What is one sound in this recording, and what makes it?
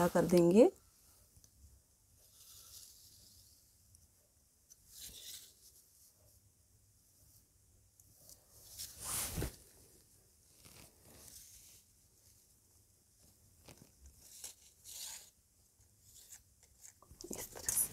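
Chalk scrapes along cloth in short strokes.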